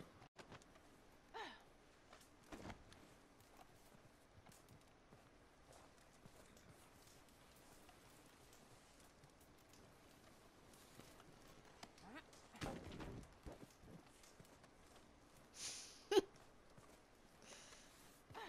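A campfire crackles softly.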